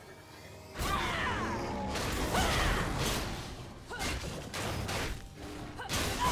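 Video game spell effects whoosh and crackle in bursts.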